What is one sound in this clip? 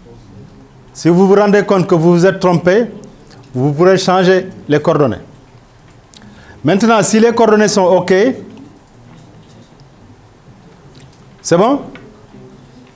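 A man lectures through a microphone, speaking with animation in short bursts.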